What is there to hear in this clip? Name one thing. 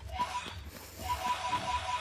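A sword strikes with a sharp clang.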